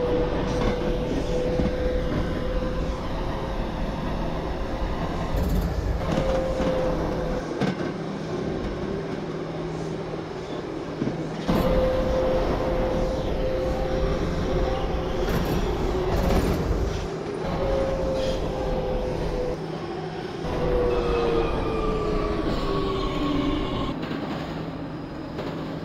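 Train motors whine, rising and falling in pitch.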